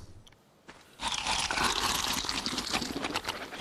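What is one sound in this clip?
Plants rustle loudly as they are picked.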